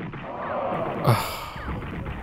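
A gun fires a sharp shot.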